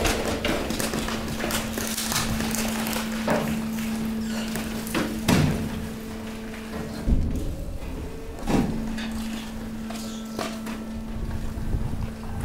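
Piled garbage shifts and rustles, with occasional knocks and thumps.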